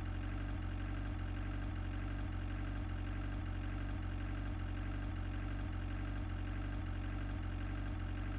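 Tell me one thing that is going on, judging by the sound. A small car engine putters steadily.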